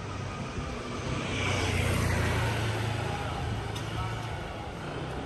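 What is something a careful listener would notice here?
A motorbike passes close by with a rising and fading engine roar.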